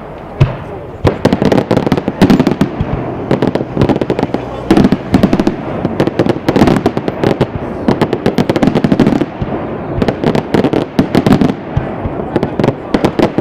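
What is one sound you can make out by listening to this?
Fireworks crackle rapidly in a long, dense burst.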